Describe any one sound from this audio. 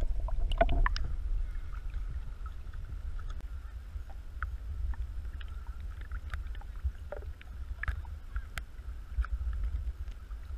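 Small waves lap softly and wind rumbles at the microphone outdoors.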